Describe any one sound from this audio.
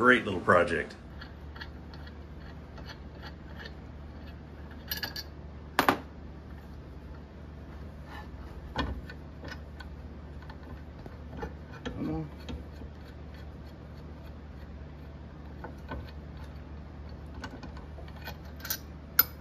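Metal parts clink and click as they are fitted together by hand.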